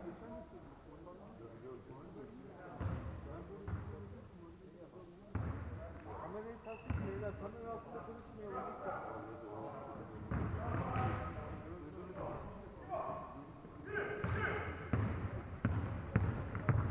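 Players' voices call out and echo around a large hall.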